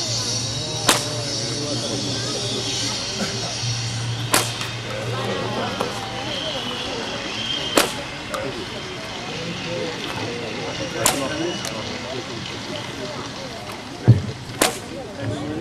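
A whip cracks sharply and loudly outdoors, again and again.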